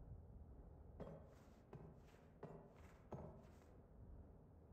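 Footsteps fall at an even pace on a hard floor.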